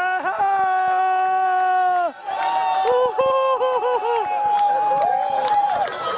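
A small crowd of spectators chants and cheers loudly nearby, outdoors.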